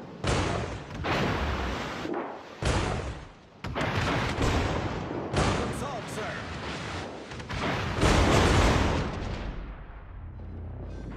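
Shells explode and splash into the water with deep rumbling bursts.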